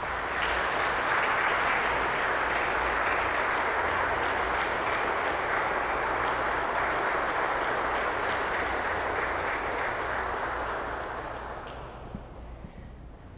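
A pipe organ plays loud, full chords that fade away into a long echo in a large hall.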